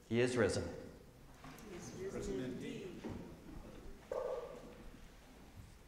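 An elderly man speaks calmly through a microphone in a large echoing room.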